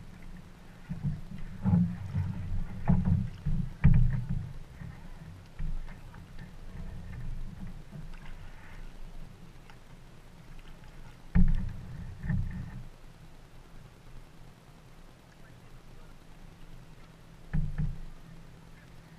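Paddles dip and splash in the water nearby.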